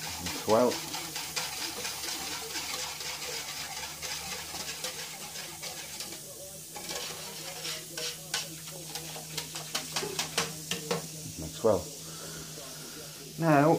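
A metal whisk clinks and scrapes rapidly against the sides of a pot.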